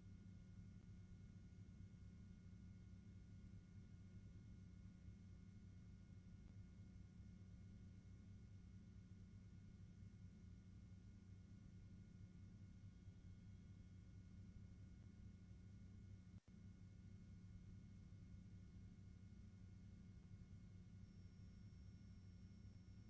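An aircraft engine drones steadily and low.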